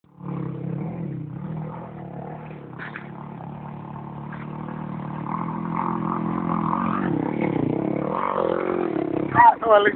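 A motorcycle engine drones and grows louder as it approaches.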